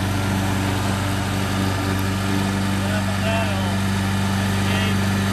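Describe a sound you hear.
A lawn mower engine runs with a steady, loud drone.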